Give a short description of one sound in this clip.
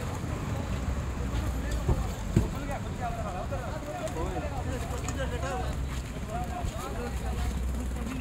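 A crowd of men talk and shout excitedly nearby.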